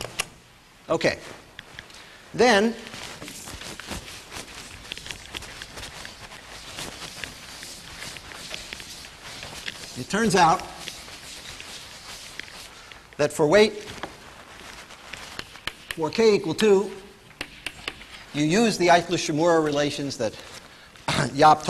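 A man speaks calmly in a lecture, slightly echoing.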